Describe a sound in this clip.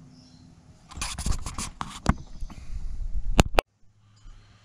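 Fingers rub and knock close against the microphone.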